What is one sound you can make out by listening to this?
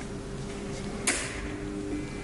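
A tonearm needle drops onto a record with a soft click.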